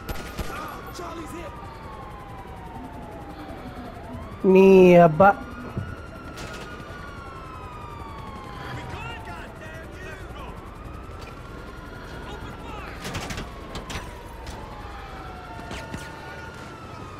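Police sirens wail nearby, rising and falling over and over.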